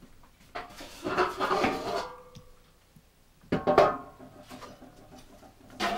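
Metal pots clank on a stove.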